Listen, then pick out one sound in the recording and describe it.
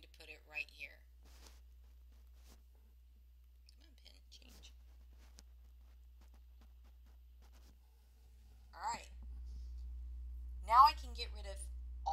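A woman speaks calmly and close to a microphone, with pauses.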